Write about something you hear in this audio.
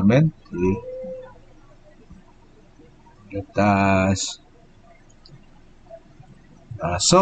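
A man speaks calmly over an online call, with pauses.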